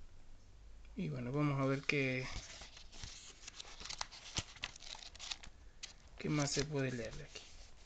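Paper pages rustle and flap as a book is flipped through.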